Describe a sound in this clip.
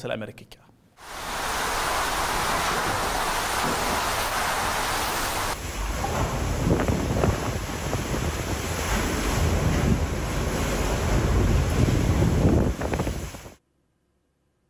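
Strong wind roars and gusts loudly outdoors.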